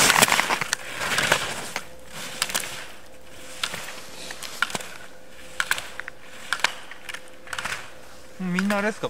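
Slalom poles clack as a skier knocks them aside.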